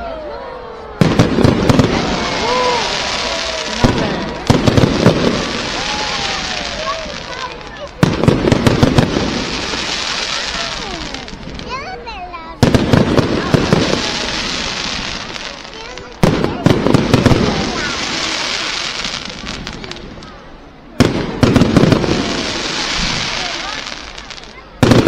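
Fireworks crackle and fizz after each burst.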